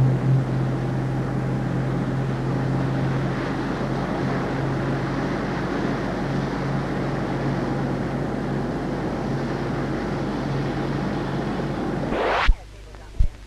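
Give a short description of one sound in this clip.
A motorboat engine roars as the boat speeds across the water.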